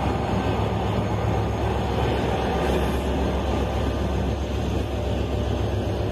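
A diesel locomotive engine drones loudly as it passes.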